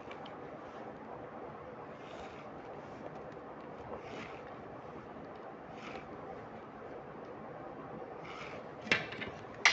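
A pencil scratches across paper in short strokes.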